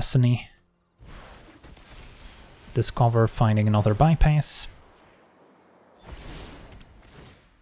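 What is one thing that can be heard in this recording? Soft magical chimes and whooshes play as game cards are cast.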